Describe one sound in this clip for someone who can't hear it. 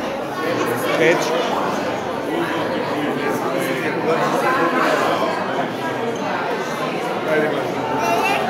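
A woman speaks to the children.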